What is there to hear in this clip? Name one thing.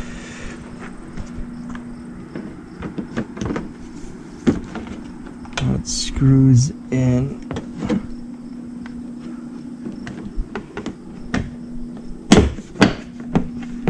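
Plastic trim pops and snaps as it is pulled loose.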